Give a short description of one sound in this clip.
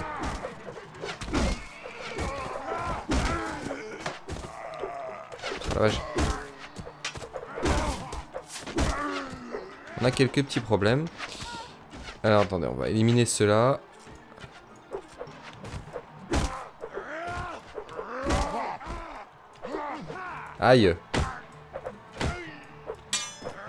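Swords and axes clash and thud in a close fight.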